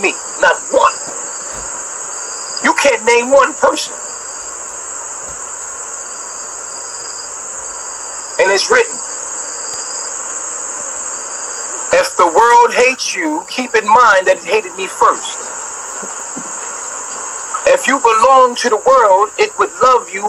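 A man talks animatedly into a phone in short bursts, heard through a tinny, hissy stream.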